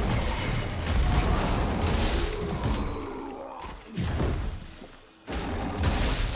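Fantasy combat effects burst and clash in a fast fight.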